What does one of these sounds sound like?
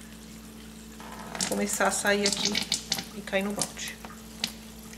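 Liquid trickles and splashes into a plastic bucket.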